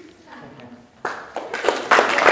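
People clap and cheer in a large hall.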